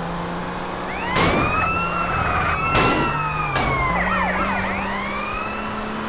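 Car tyres screech as a sports car skids sideways on asphalt.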